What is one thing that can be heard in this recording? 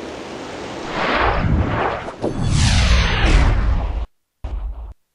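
A magic spell whooshes with sweeping, rising and falling tones.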